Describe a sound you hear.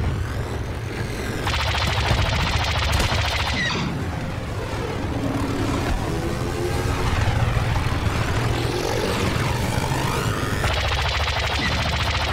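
A starfighter engine roars steadily.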